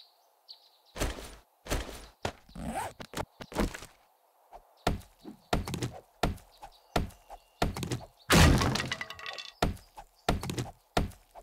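A stone axe chops at wood with heavy, uneven thuds.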